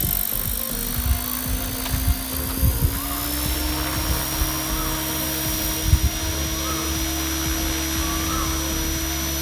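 A small toy aircraft's motor whines steadily, rising slightly in pitch.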